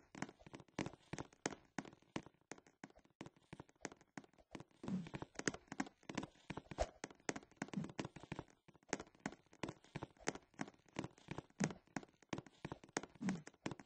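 Quick footsteps tap on a hard floor.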